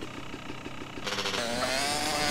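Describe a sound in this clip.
A motorcycle engine revs.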